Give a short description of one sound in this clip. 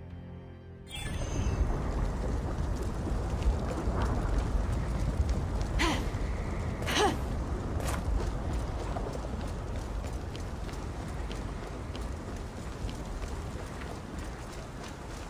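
Footsteps run quickly over stone.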